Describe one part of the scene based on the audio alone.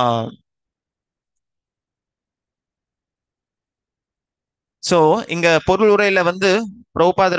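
A man speaks calmly into a headset microphone, heard through an online call.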